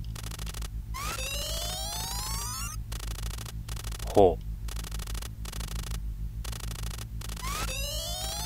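Short rising electronic chimes sound as a message pops up.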